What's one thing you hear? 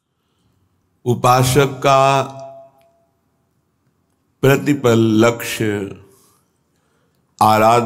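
An elderly man chants melodiously into a close microphone, in short phrases with pauses.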